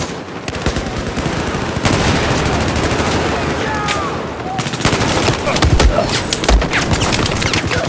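Rapid gunfire rattles loudly and close by.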